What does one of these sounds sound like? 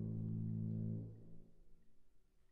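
Low brass instruments hold a deep chord that stops and rings away in a large echoing hall.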